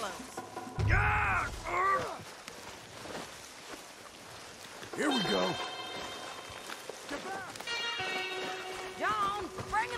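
A man cries out and groans in pain close by.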